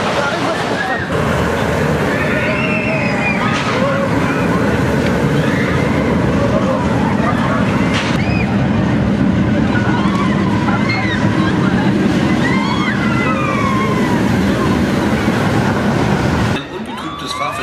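A roller coaster train roars and rattles along its track.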